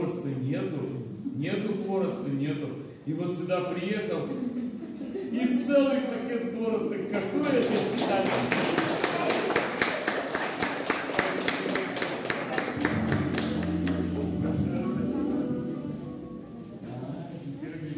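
An accordion plays a lively tune.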